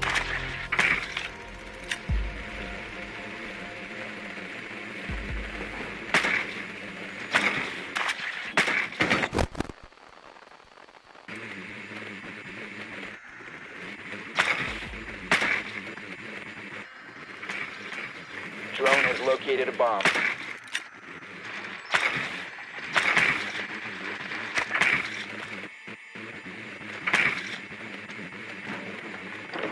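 A small remote-controlled drone whirs as it rolls across a floor.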